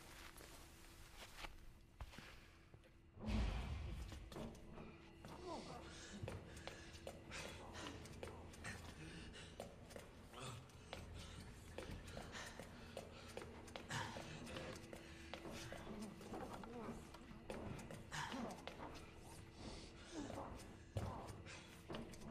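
Footsteps walk slowly over a hard floor.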